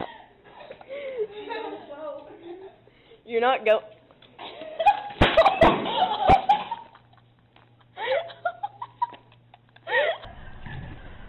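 A young woman laughs and shrieks close by.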